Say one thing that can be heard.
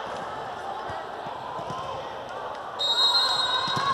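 A volleyball is bounced on the floor.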